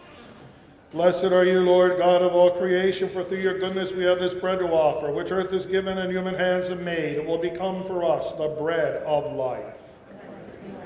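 An elderly man chants steadily through a microphone.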